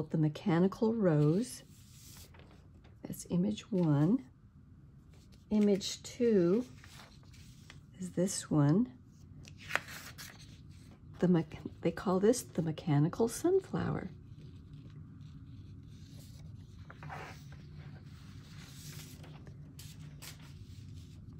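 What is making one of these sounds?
Sheets of paper rustle and slide as they are handled.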